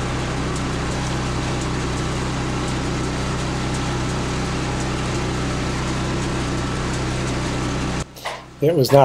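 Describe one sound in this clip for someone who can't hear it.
The engine of a motorized horse cart hums steadily.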